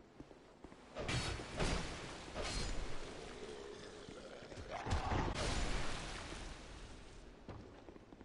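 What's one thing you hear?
Metal blades clash and slash in a fight.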